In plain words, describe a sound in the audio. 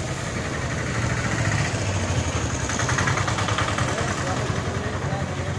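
A car engine rumbles close by as it passes.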